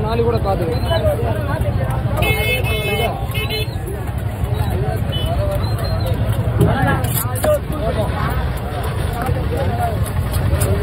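A large knife slices through raw fish flesh.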